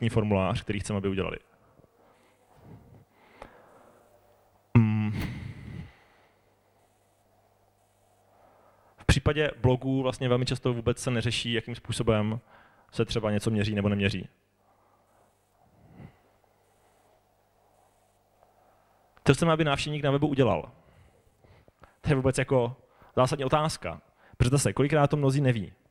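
A young man speaks calmly into a microphone through loudspeakers in a large room.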